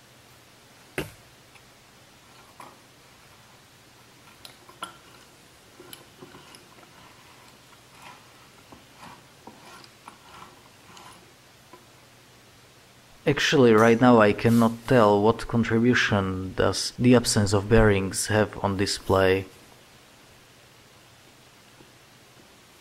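A small metal key clicks and scrapes faintly against a screw.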